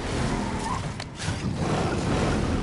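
A glider snaps open with a sudden whoosh.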